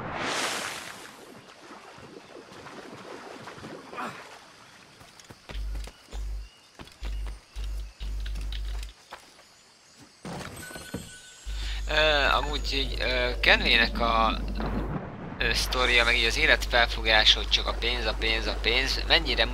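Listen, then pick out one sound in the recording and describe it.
Water sloshes as a swimmer paddles.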